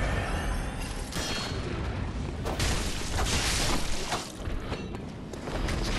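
A blade slashes and strikes flesh with wet thuds.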